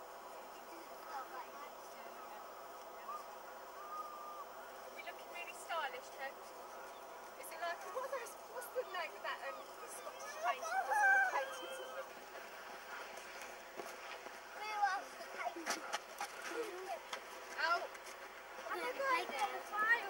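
Young girls talk and call out excitedly nearby.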